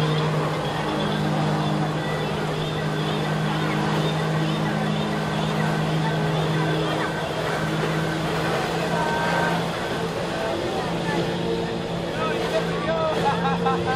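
A personal watercraft engine drones under steady load.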